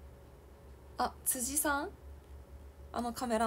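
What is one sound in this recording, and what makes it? A young woman speaks close by in short bursts, with animation.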